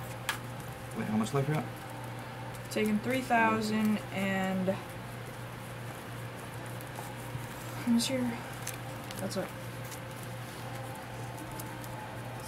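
A deck of playing cards is shuffled by hand.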